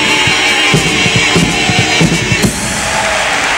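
A choir of men sings loudly.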